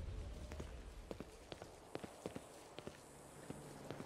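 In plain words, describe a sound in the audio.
Footsteps scuff slowly on rough ground.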